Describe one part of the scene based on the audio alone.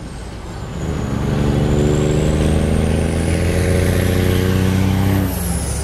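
A truck rolls by on the road with a rushing whoosh.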